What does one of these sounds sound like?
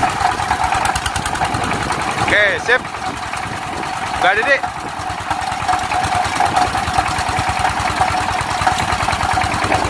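A small engine runs with a fast, steady chugging.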